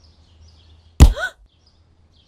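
A wooden stick thuds onto the ground.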